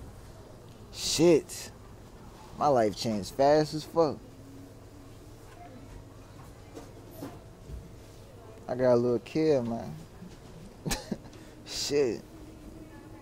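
A young man talks in short, animated bursts close to the microphone.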